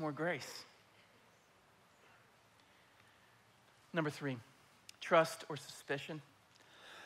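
A man speaks with animation through a microphone in a large hall, pausing between phrases.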